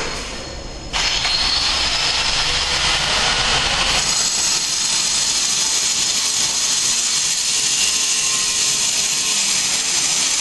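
A vacuum cleaner roars loudly and steadily close by.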